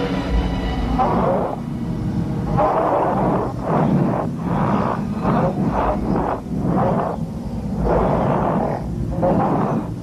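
A man pants and groans in short bursts.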